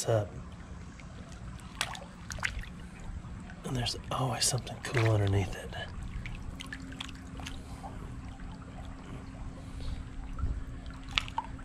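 Shallow water trickles and bubbles steadily over stones.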